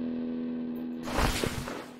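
A short game sound plays as an item is picked up.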